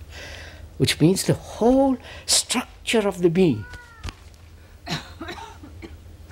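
An elderly man speaks slowly and thoughtfully into a microphone.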